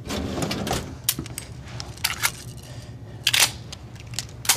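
Metal clicks and clacks as a pistol is handled and loaded.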